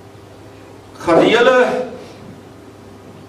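A middle-aged man speaks briefly into a microphone in a room with a slight echo.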